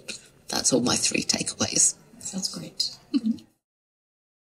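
A young woman speaks calmly into a handheld microphone, close by.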